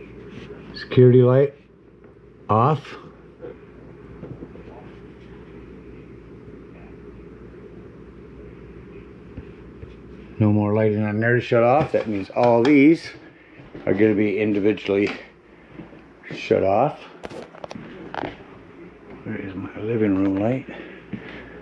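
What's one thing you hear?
A man speaks close by, calmly, in short bursts.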